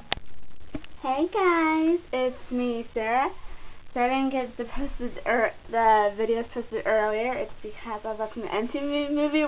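A teenage girl talks with animation, close to the microphone.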